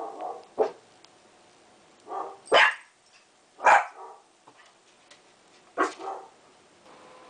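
A small dog barks sharply, over and over.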